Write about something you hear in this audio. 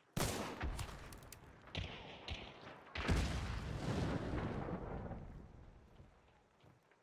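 A rifle fires loud shots that echo and rumble away.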